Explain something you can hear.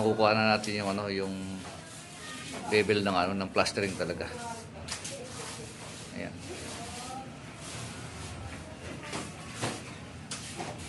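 A trowel scrapes wet plaster across a wall.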